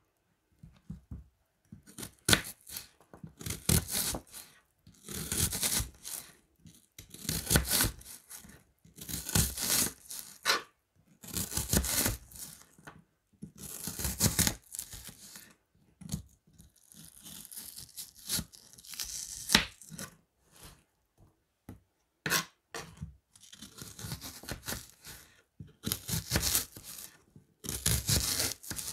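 A knife slices through an onion and taps on a plastic cutting board in bursts.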